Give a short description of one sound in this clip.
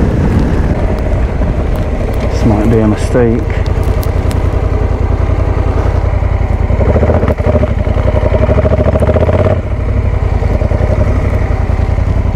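A motorcycle engine throbs steadily close by.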